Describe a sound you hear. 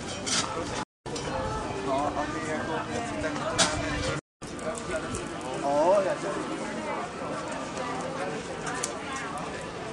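Several young people talk and call out nearby outdoors.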